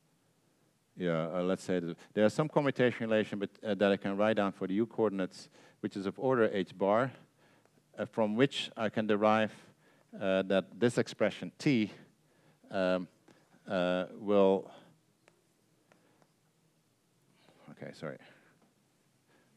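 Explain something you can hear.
An older man lectures calmly through a microphone, in pauses.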